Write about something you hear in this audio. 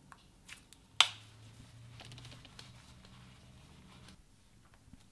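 Paper bills rustle under a hand.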